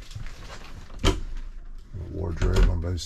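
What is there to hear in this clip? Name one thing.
A cabinet door opens with a knock.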